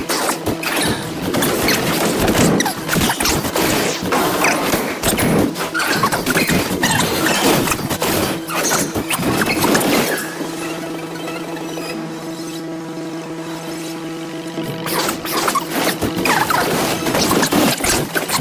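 Game battle effects whoosh, clash and crackle with loud impacts.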